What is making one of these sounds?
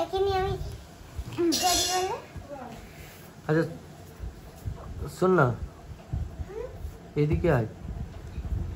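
A young girl talks and calls out nearby.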